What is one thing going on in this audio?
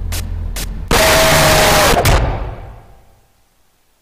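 A loud harsh screech blasts suddenly and then fades.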